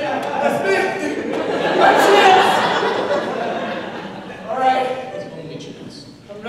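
Young men sing together in harmony into a microphone in a large hall.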